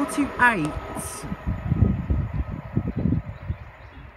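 A second electric train approaches in the distance.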